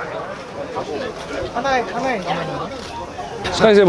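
People chatter nearby in a busy crowd.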